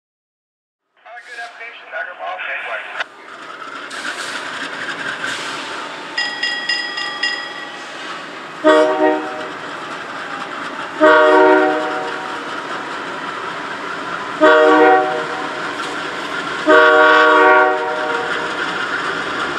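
A diesel locomotive rumbles steadily as it approaches.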